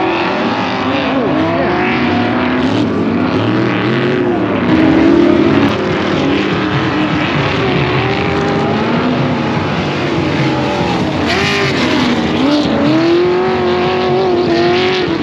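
Off-road vehicle engines roar and rev up and down.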